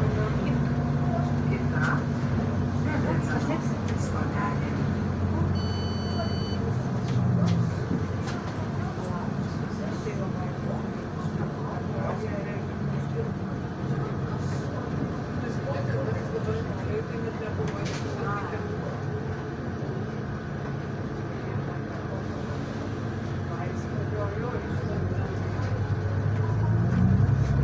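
Loose fittings inside the bus rattle and clatter.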